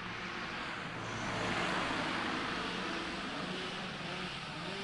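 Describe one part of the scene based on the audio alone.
A car drives past close by.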